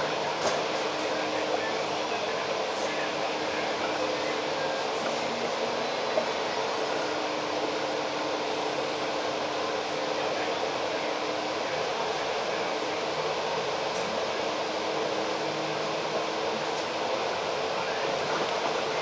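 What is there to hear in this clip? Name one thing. Busy city traffic rumbles steadily all around outdoors.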